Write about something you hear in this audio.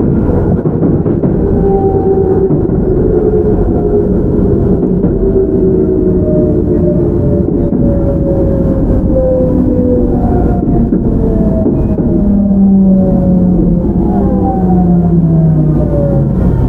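An electric train's motors whine and fall in pitch as the train slows.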